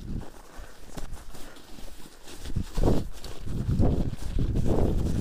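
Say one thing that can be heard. Wind rumbles and buffets loudly against the microphone.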